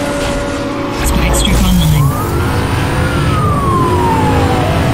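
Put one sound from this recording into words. A nitro boost whooshes with a low rumble.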